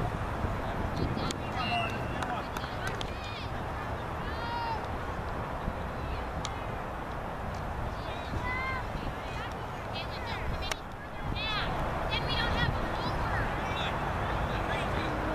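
Young girls call out to each other across an open field.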